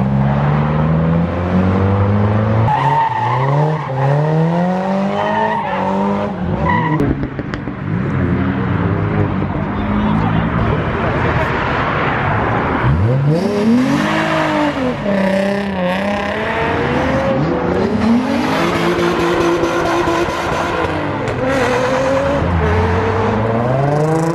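Car engines rev hard and roar, rising and falling in pitch.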